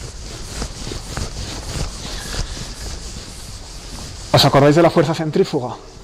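A board eraser rubs across a chalkboard.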